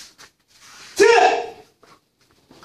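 A man lets out a sharp, loud shout.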